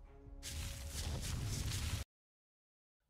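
A huge creature stomps with loud, heavy thuds and rumbling.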